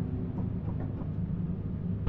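Metal gears grind as they turn.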